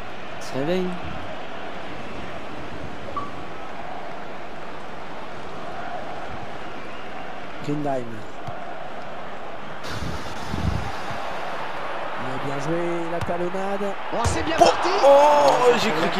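A stadium crowd roars in the background.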